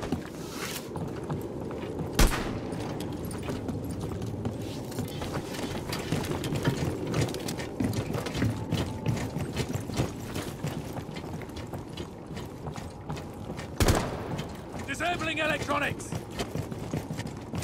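Footsteps thud and scrape on roof tiles.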